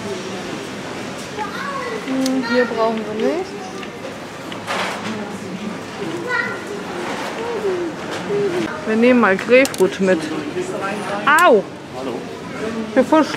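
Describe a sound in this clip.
A shopping cart rattles as it rolls over a hard floor.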